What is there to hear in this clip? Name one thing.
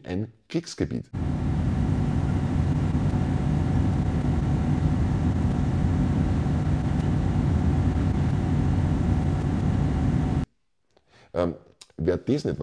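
A middle-aged man talks with animation, close to a microphone.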